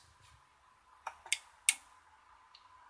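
A relay clicks sharply several times.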